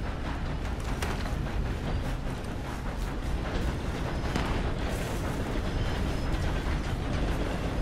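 A steam train rumbles in the distance.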